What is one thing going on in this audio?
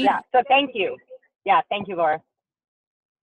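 A young woman talks cheerfully over an online call.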